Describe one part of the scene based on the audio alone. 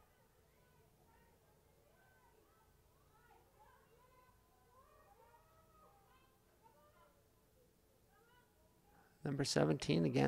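Players call out faintly across an open field.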